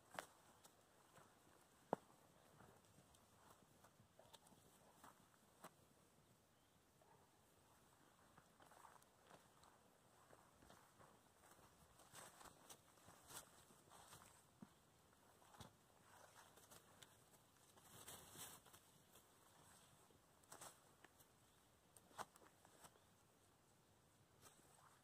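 Puppies rustle through grass and leaves as they run and play.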